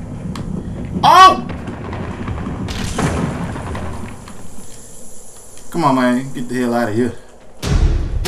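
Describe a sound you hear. A man exclaims loudly and speaks with animation close to a microphone.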